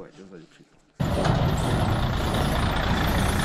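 A heavy truck rumbles past on a gravel road.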